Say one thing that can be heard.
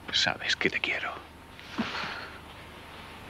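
A man speaks softly, close by.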